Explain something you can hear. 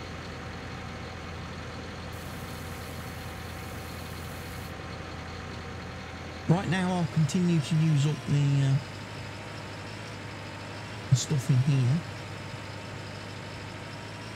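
A small tracked dumper's engine hums steadily.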